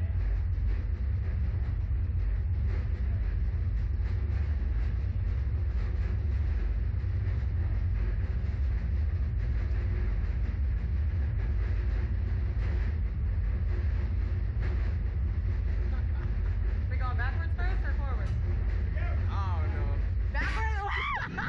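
Wind roars loudly past, close up.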